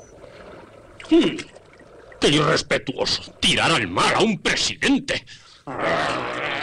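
A man shouts angrily.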